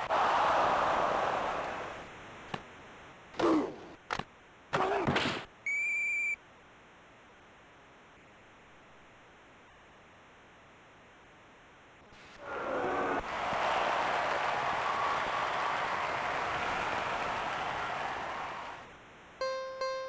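A crowd roars and cheers in an arena.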